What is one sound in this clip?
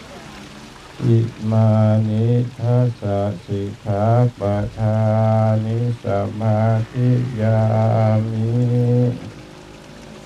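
A man chants in a deep, steady voice.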